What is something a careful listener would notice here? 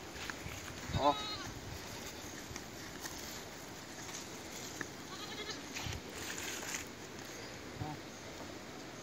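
A goat bleats nearby.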